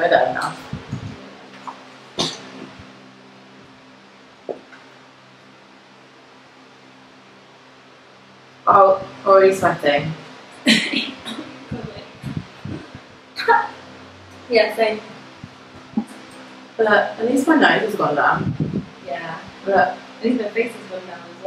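Another young woman talks calmly close by.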